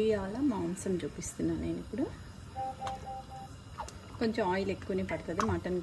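Oil glugs and trickles as it is poured into a pan.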